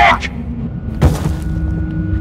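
A heavy blow strikes with a thud.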